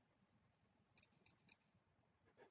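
Dice clatter briefly as they are rolled.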